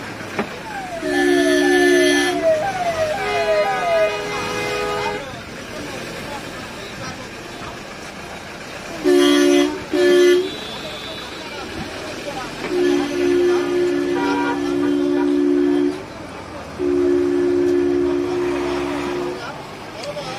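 Car horns honk loudly in repeated long blasts.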